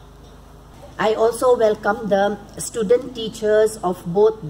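A woman speaks loudly through a microphone.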